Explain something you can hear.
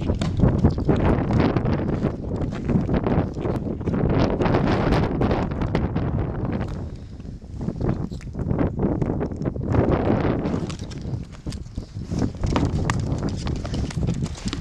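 Strong wind blows across the microphone outdoors.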